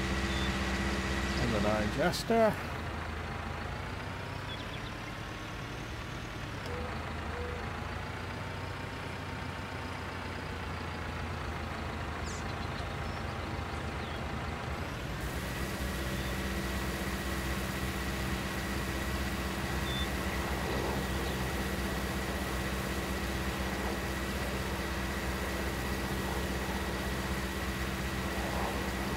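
A tractor engine hums steadily, rising and falling in pitch as it drives.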